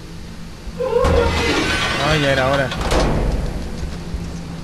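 A heavy wooden cage gate rumbles and rattles as it lifts.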